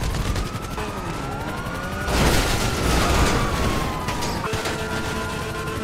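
A car engine roars as it speeds off.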